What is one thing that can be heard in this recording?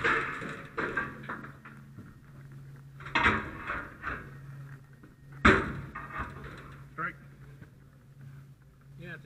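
A metal tool pries and scrapes against a steel door frame.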